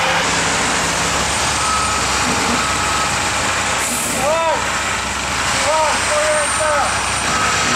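A concrete float scrapes softly across wet concrete.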